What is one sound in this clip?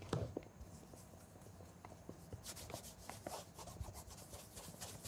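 A cloth rubs briskly against a leather shoe.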